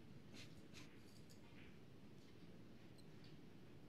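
Snooker balls click together softly.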